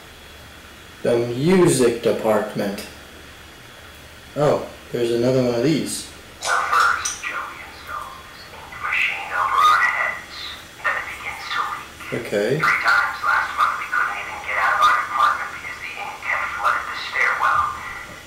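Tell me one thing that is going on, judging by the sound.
A young man talks animatedly into a nearby microphone.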